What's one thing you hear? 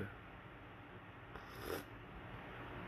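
A man sips a drink from a mug.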